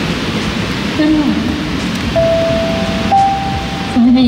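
A young woman sings into a microphone over a loud concert sound system.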